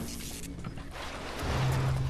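Electricity crackles and buzzes close by.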